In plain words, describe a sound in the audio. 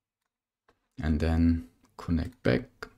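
A young man speaks close to a microphone.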